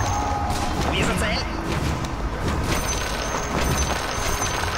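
Magic blasts burst with sharp bangs.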